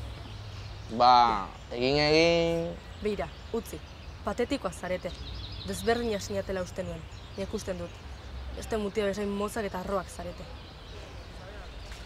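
A teenage girl speaks sharply, close by.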